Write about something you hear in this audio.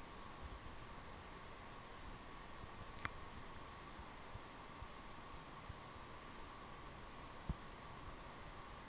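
A steam locomotive chuffs heavily in the distance.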